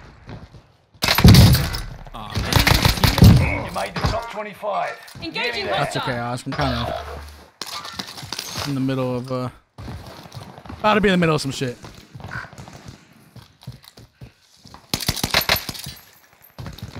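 Rifle shots crack loudly, one after another.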